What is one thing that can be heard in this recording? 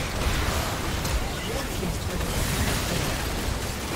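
A game building collapses with a heavy crash.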